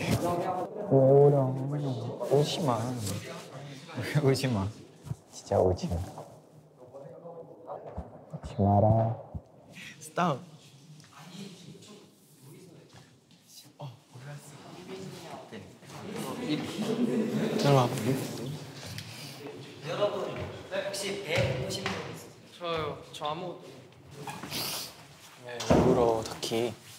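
Young men talk and laugh nearby.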